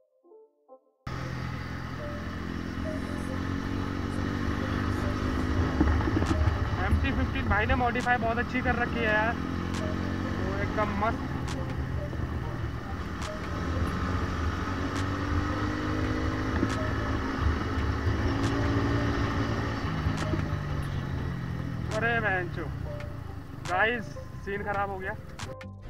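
A motorcycle engine hums and revs close by.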